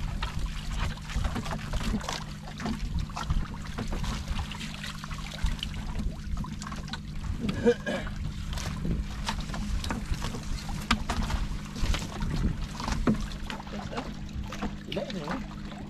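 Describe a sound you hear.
Fishing line and gear knock and rattle against a boat's side.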